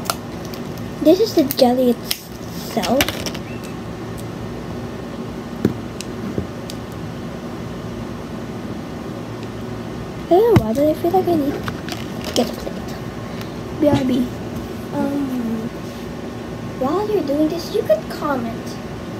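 A young girl talks close by, in short bursts.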